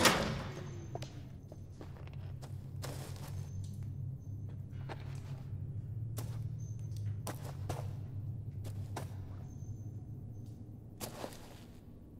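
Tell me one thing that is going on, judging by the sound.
Footsteps scuff slowly over stone.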